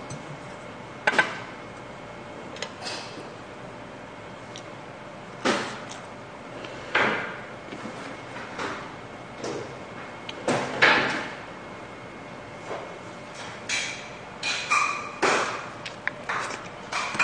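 Chopsticks and a spoon clink against dishes.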